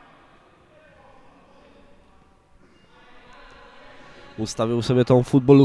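Spectators murmur faintly in a large echoing hall.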